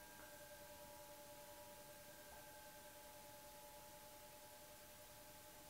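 Singing bowls are struck softly and ring out with long, steady, sustained tones.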